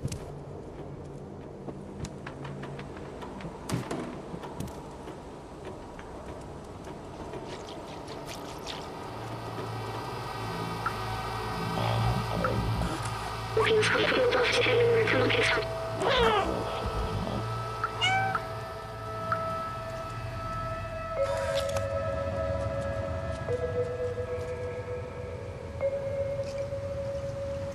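A cat's paws patter softly on a hard floor.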